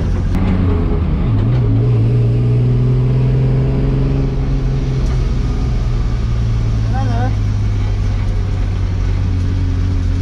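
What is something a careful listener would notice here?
A race car engine roars loudly from inside the cabin, revving up and down.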